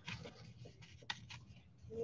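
Trading cards slide and rustle as a hand handles them.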